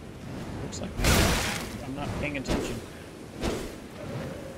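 A large winged creature screeches.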